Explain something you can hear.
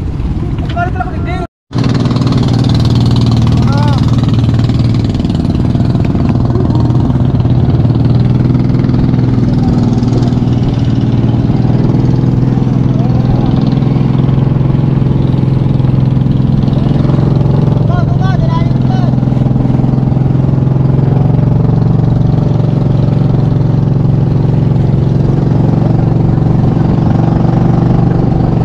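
A boat engine drones steadily close by.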